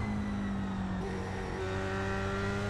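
A racing car engine briefly drops in pitch as it shifts gear.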